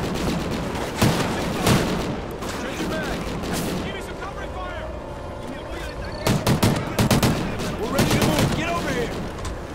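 Gunshots crack in sharp bursts.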